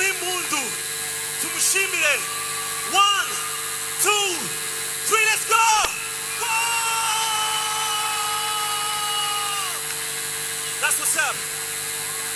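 A man shouts and sings into a microphone over loudspeakers in a large echoing hall.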